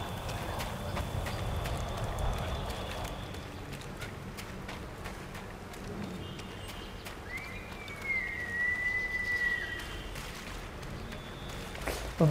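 Footsteps crunch on loose pebbles.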